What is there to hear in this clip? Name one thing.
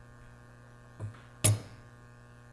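A hammer taps sharply on metal.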